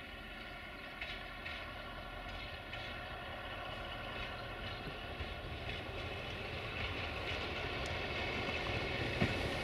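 Locomotive wheels clack over rail joints.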